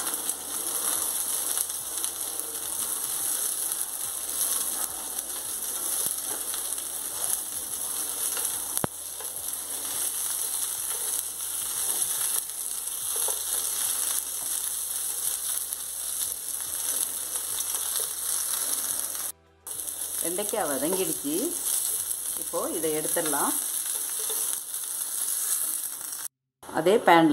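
Vegetables sizzle steadily in hot oil in a frying pan.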